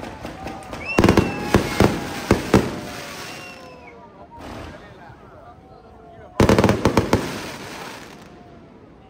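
Fireworks crackle and fizz in the sky.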